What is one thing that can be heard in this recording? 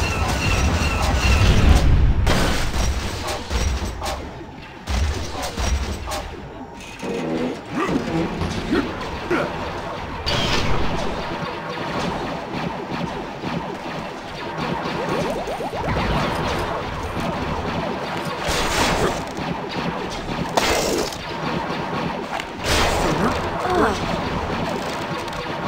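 Laser blasters fire in quick zapping bursts.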